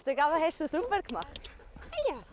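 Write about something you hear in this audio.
A young woman speaks cheerfully close by, outdoors.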